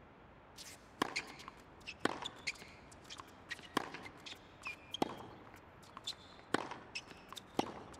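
A tennis ball is struck with a racket in sharp pops.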